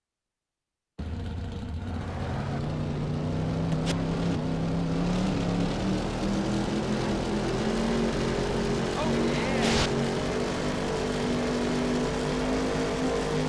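A race car engine roars and rises in pitch as it speeds up.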